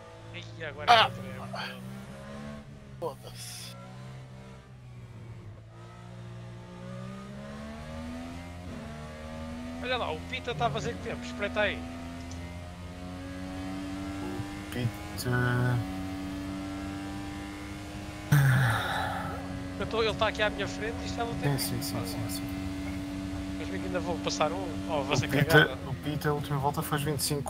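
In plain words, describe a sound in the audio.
An open-wheel formula racing car engine accelerates at high revs.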